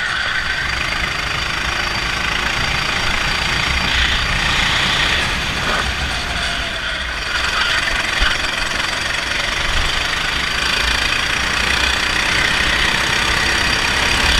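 A go-kart engine buzzes loudly up close, rising and falling as it speeds through corners.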